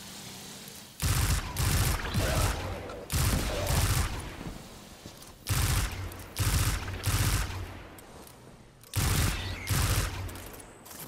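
Heavy gunshots boom one after another.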